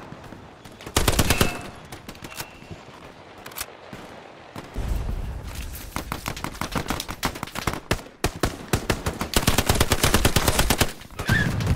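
A submachine gun fires rapid bursts close by.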